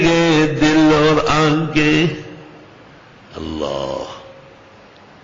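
An elderly man chants in a drawn-out voice.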